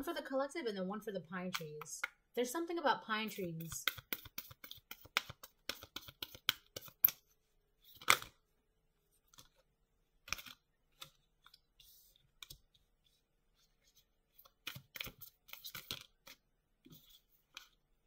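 Playing cards riffle and slap together in a pair of hands.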